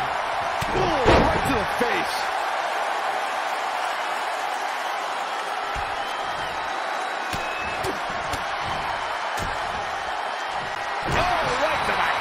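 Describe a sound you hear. Heavy body slams thud on a wrestling ring mat.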